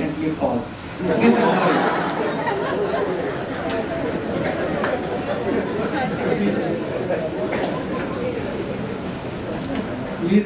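A crowd of young women chatter and laugh together in an echoing room.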